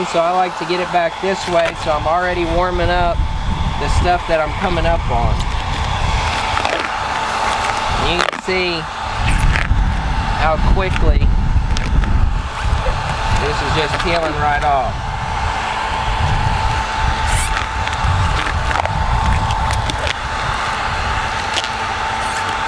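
A hair dryer blows with a steady whirring hum.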